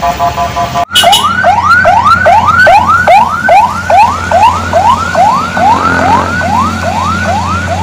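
A police siren wails, rising over and over.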